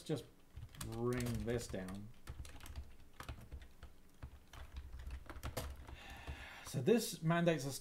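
Keyboard keys clack as someone types.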